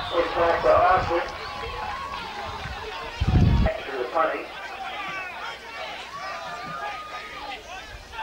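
Men and boys shout and call out across an open field.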